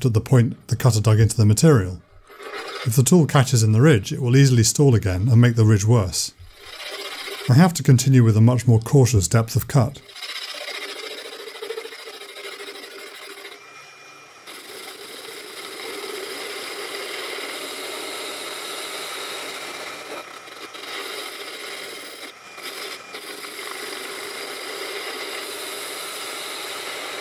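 A metal lathe whirs steadily as its cutting tool shaves a spinning part.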